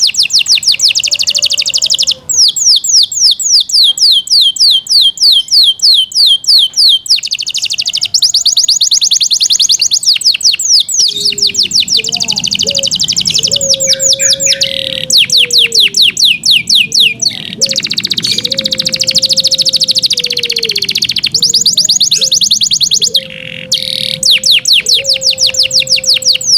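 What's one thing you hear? A canary sings close by in fast rapid trills and chirps.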